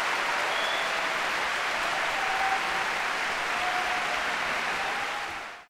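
An orchestra plays loudly in a large echoing concert hall.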